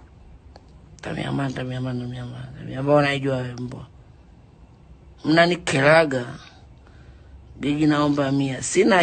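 A young woman speaks calmly and close to a phone microphone.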